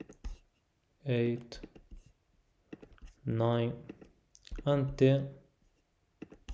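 A man speaks calmly and close to a microphone, in short phrases.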